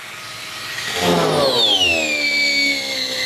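An electric grinder whirs and then winds down.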